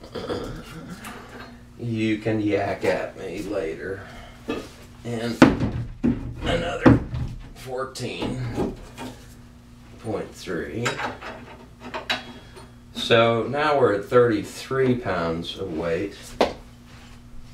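Metal weights clank and knock against a metal rod.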